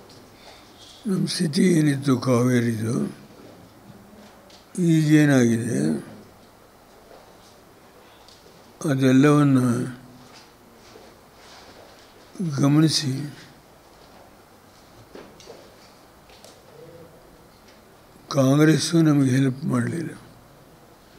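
An elderly man speaks calmly into a microphone in short bursts with long pauses.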